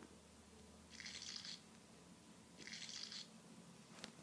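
A shark chomps its prey with a crunching bite.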